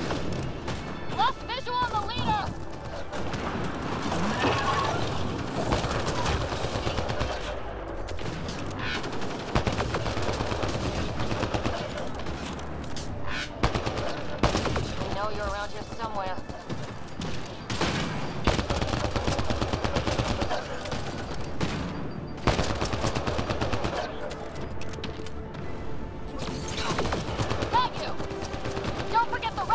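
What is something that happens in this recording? Gunfire cracks and rattles in quick bursts.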